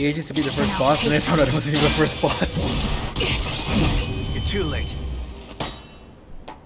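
Blades clash and strike with loud, fast impacts.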